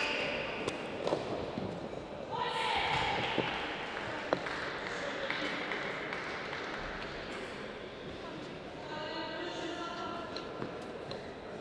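A tennis ball is struck hard with a racket several times.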